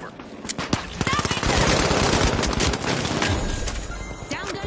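A gun fires rapid shots in bursts.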